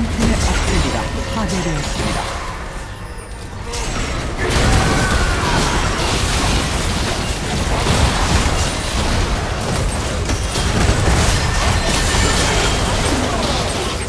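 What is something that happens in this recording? Spell effects burst and crackle in a fast fight.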